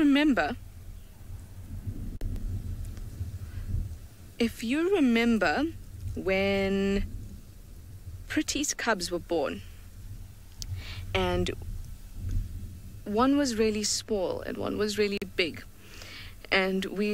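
A young hyena whines in high, wavering cries.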